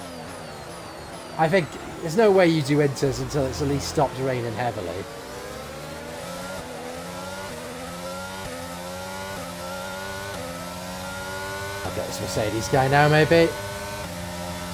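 A racing car engine whines and rises in pitch through gear changes.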